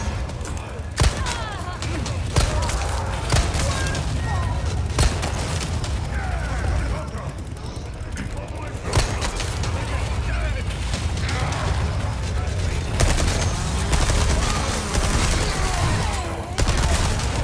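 Men groan and shout as they approach.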